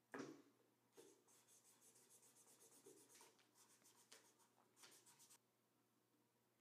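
A marker squeaks across paper.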